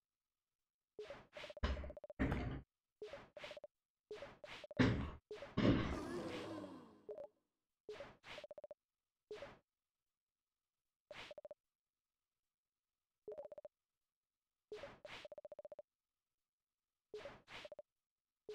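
Quick electronic blips chatter in short bursts, like typed dialogue.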